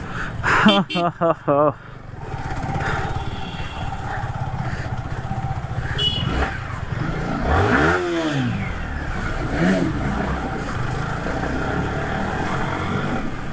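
A motorcycle engine hums steadily while riding at low speed.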